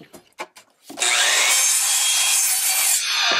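A power saw whines loudly as it cuts through wood.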